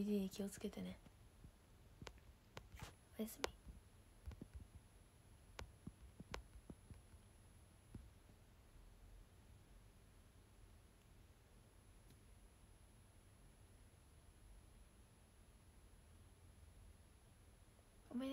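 A young woman speaks softly, close to the microphone.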